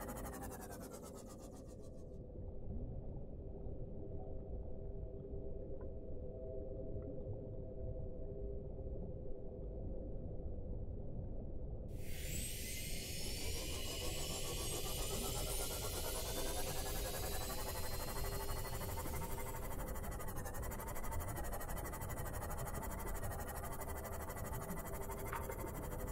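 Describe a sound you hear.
A submarine engine hums steadily underwater.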